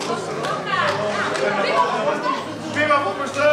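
People clap their hands.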